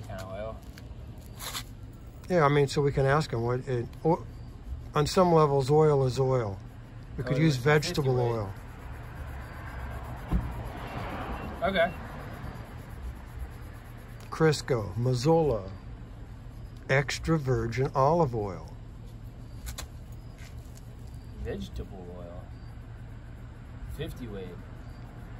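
A young man talks calmly and clearly close by, outdoors.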